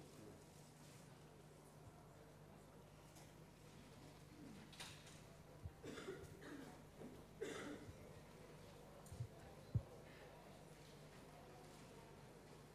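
Men and women murmur and talk quietly nearby.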